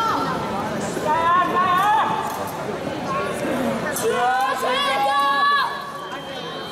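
A young woman shouts loudly in a large echoing hall.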